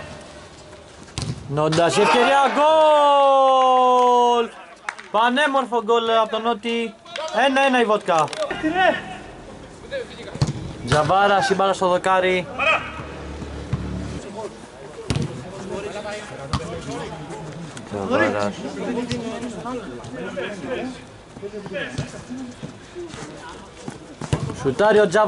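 A football thumps off a foot.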